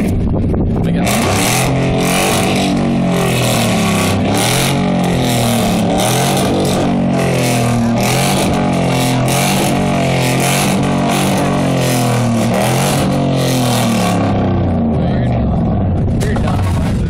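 A pickup truck with a loud exhaust revs hard again and again.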